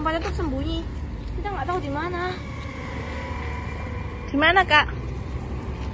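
A young boy speaks nearby in a high voice.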